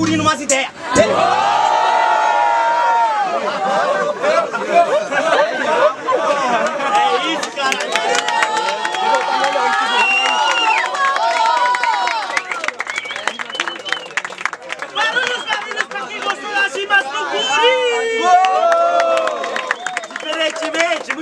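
A crowd of young people cheers and shouts.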